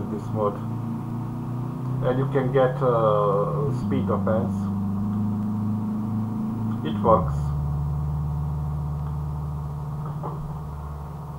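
A car engine hums steadily, shifting pitch now and then.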